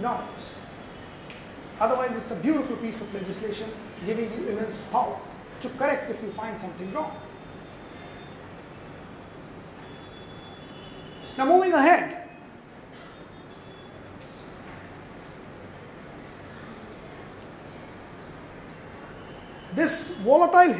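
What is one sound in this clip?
A middle-aged man speaks with animation into a microphone, heard through a loudspeaker.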